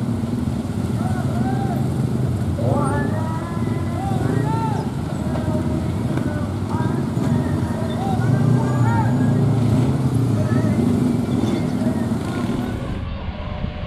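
Motorcycle engines idle and rev nearby.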